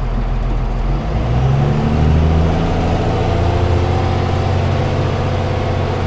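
A vehicle engine revs up as the vehicle pulls away.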